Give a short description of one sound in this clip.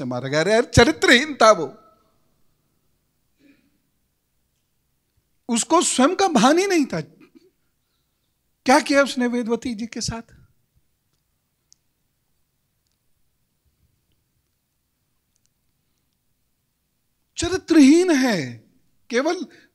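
A man sings into a microphone in short phrases with long pauses between them.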